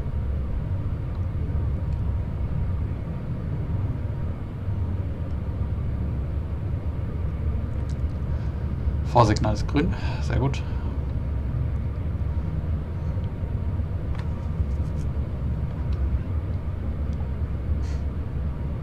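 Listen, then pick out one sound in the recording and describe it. An electric multiple-unit train rumbles along the rails at speed, heard from the driver's cab.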